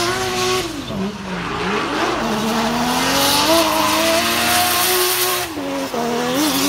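A car engine revs hard, its pitch rising and falling.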